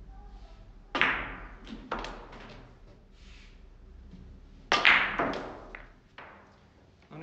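Billiard balls knock sharply against each other and the cushions.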